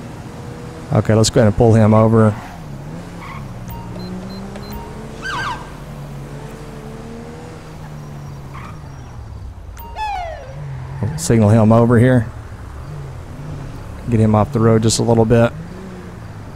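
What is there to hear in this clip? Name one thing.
A police siren gives short wailing bursts.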